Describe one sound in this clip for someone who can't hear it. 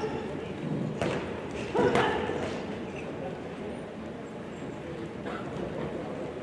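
Gloved punches thud now and then in a large echoing hall.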